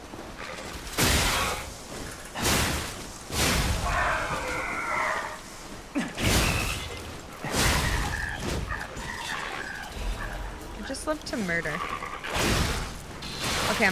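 Weapons clash and strike in heavy, sudden blows.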